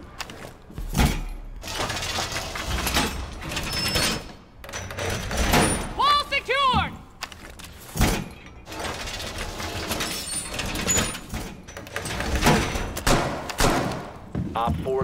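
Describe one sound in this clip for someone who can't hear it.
Metal panels clank and rattle as a wall is reinforced.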